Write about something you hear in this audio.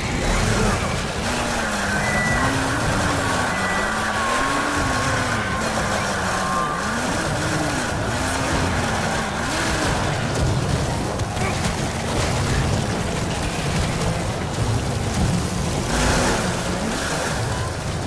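A chainsaw engine whines and revs up and down.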